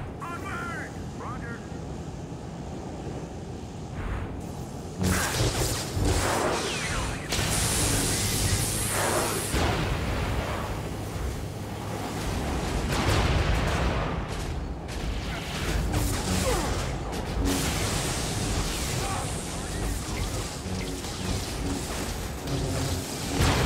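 Lightsabers hum and swoosh as they swing.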